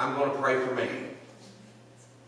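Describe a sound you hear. A man speaks into a microphone in a large room with a slight echo.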